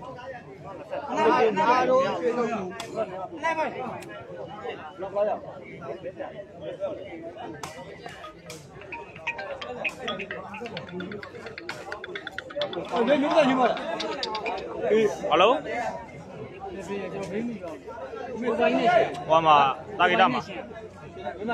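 Young men shout loudly nearby in bursts.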